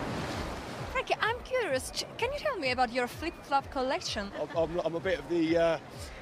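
A young woman asks questions with animation into a microphone, outdoors.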